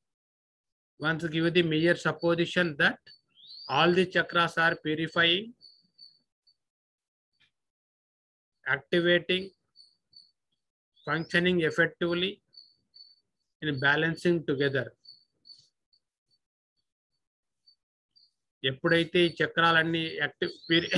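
An elderly man speaks calmly in short phrases, close by, with pauses between them.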